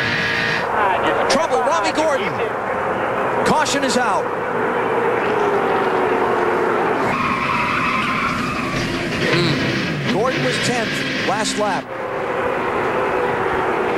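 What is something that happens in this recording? Tyres screech as a race car spins out.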